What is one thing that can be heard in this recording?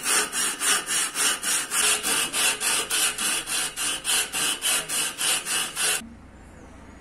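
A sanding file rasps back and forth over wood in quick, even strokes.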